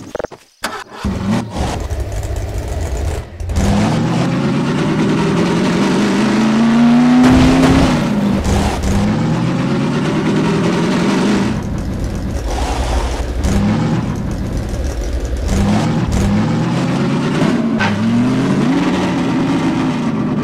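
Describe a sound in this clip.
A buggy's engine starts up and revs, rising and falling as it drives.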